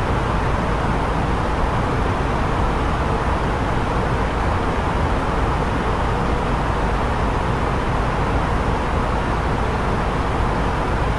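Jet engines drone steadily in flight.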